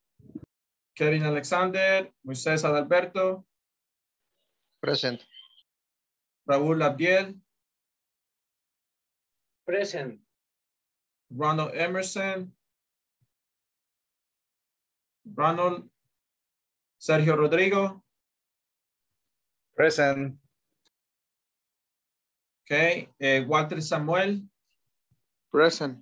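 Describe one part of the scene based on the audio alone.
A man speaks calmly through a headset microphone on an online call, in short phrases with pauses.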